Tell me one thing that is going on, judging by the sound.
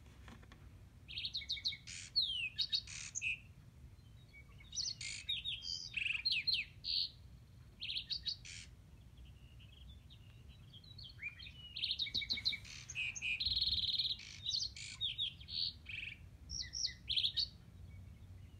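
Wooden blocks click softly as they are turned by hand.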